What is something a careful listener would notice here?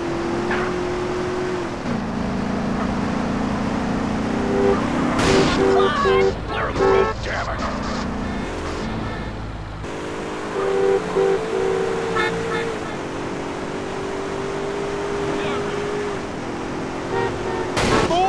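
A car engine roars steadily as a car speeds along.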